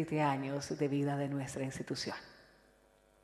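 A woman speaks calmly into a microphone in an echoing hall.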